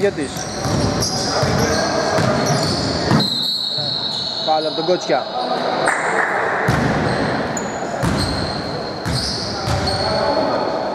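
A basketball thuds on a wooden floor in a large echoing hall.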